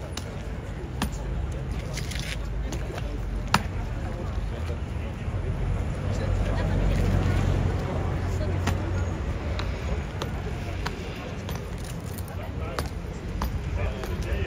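Boots stamp on stone paving in sharp steps.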